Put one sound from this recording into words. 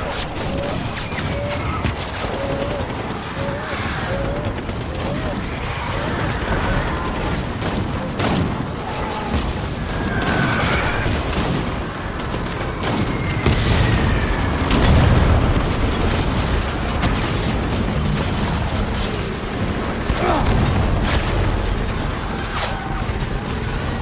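Footsteps crunch over rough ground at a run.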